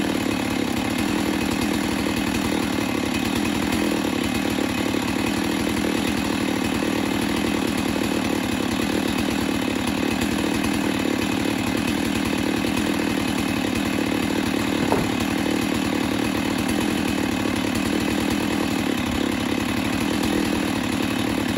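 An engine drones steadily close by.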